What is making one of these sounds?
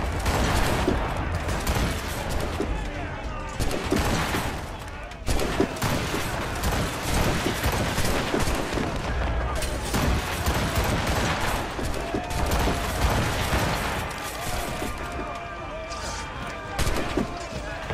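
Explosions boom across the water.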